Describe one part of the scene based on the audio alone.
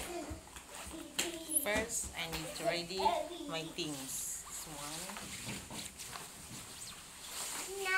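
A nylon bag rustles as it is handled.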